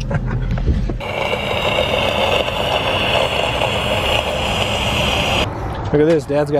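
Gas hisses loudly from a tank into a balloon.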